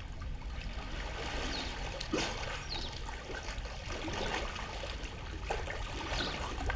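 Water splashes as a man swims.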